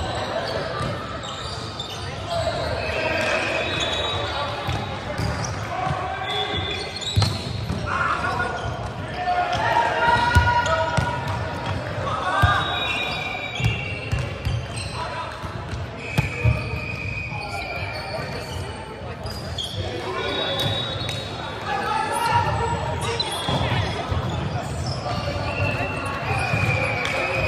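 Young men call out and talk across an echoing indoor hall.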